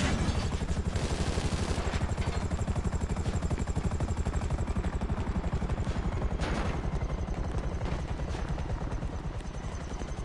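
Quick footsteps patter on a hard roof in a video game.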